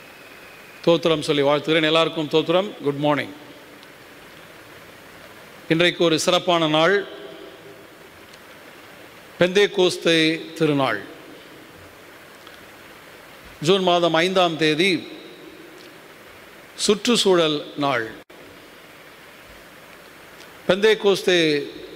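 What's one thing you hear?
A middle-aged man speaks slowly through a microphone in short phrases, echoing in a large hall.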